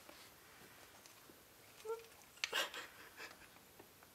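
A young woman speaks softly and quietly nearby.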